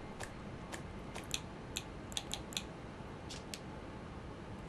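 Soft menu clicks tick one after another.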